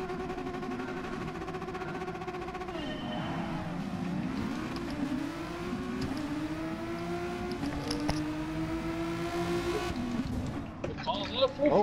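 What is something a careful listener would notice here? Racing car engines idle and then roar as they accelerate, rising through the gears.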